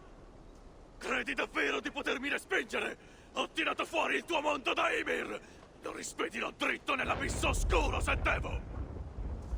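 A man speaks in a deep, forceful voice.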